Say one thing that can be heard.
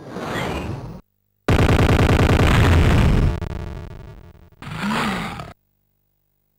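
Loud electronic game sounds blare in short bursts, then stop.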